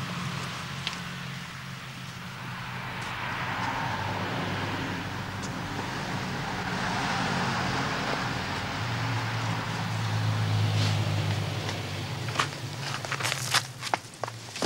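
Footsteps walk along a path.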